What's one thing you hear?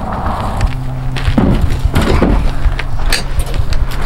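A heavy carcass thuds into a pickup truck bed.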